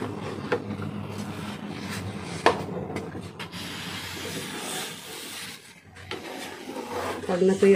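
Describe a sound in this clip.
A metal spoon stirs thick batter in a pan, with wet squelching and scraping.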